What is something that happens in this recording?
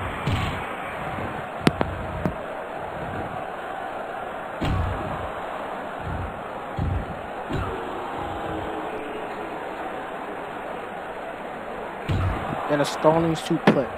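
Bodies slam heavily onto a wrestling mat with dull thuds.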